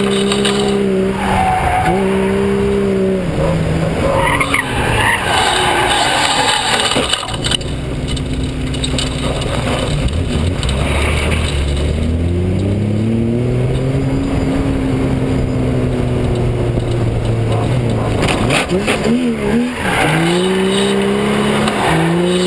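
Tyres squeal and screech on asphalt.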